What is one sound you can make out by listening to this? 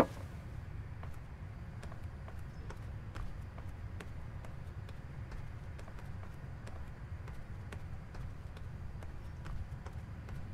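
Footsteps pad slowly across a hard floor.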